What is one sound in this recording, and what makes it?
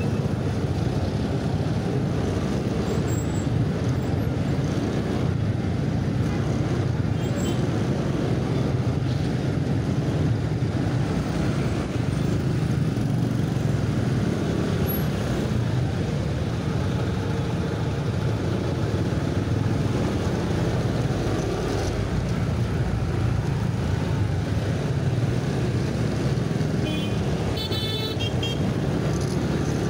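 Traffic of many motorbikes and cars hums all around outdoors.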